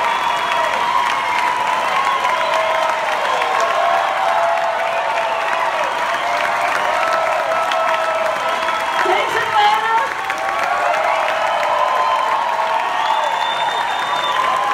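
Acoustic guitars strum.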